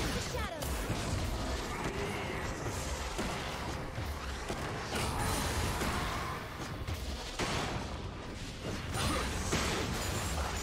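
Magic spells whoosh and crackle in a busy game battle.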